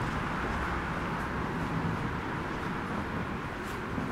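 A woman's footsteps tap on paving stones nearby.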